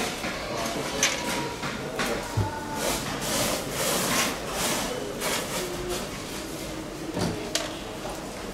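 A plastic tub knocks and rattles as it is handled.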